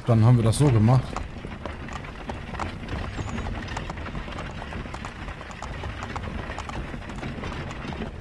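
A wooden cart rumbles and clatters along a dirt road.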